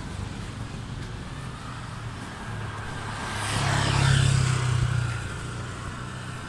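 A motorcycle engine rumbles past close by.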